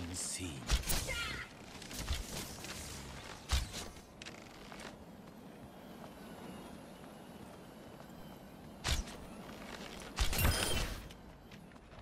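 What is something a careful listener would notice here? A bow twangs as arrows are loosed with sharp snaps.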